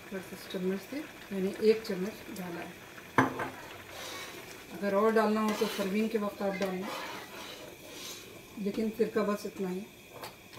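Liquid pours from a bottle into a pan of soup.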